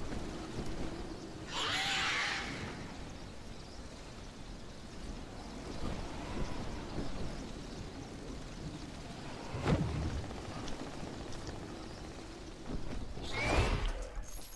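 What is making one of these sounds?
Wind rushes steadily past during a long glide.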